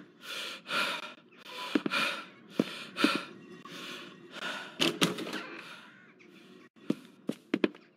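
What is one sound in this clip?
Footsteps thump on wooden stairs and floorboards.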